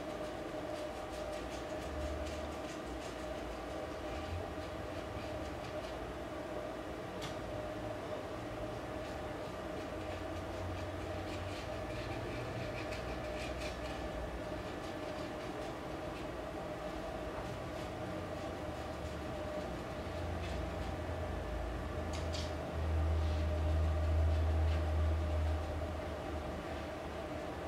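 A brush dabs and scrapes softly on a rough surface.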